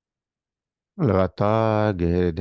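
An elderly man speaks through an online call.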